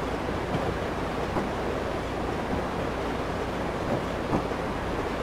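A train engine rumbles steadily.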